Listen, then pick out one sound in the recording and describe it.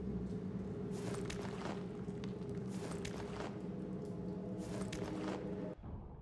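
A metal blade clinks as it is picked up off a stone floor.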